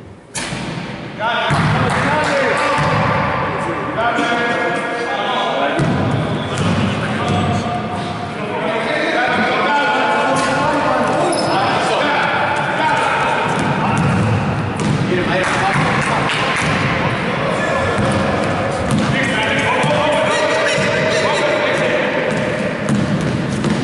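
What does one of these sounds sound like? Young men shout to each other across an echoing court.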